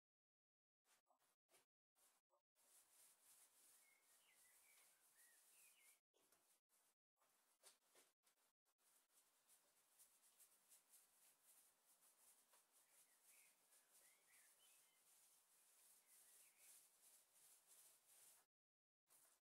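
A paintbrush swishes across a wooden surface.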